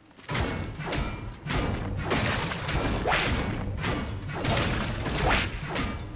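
A supply box creaks open with a rattle.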